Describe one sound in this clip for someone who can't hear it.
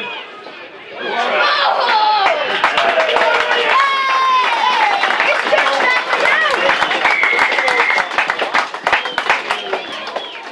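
Spectators cheer and shout loudly nearby.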